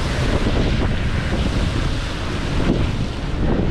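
Water jets of a fountain splash and hiss, then stop.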